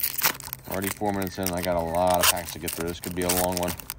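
A foil wrapper crinkles as it is handled.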